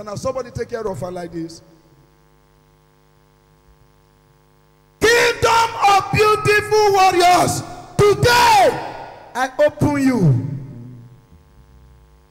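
A man speaks loudly and with passion into a microphone, heard close.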